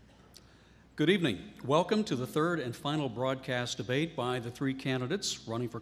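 A man speaks clearly through a microphone.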